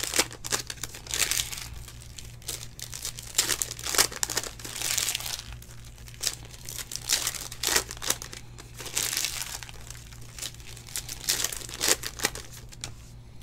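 Plastic card wrappers crinkle and rustle in hands.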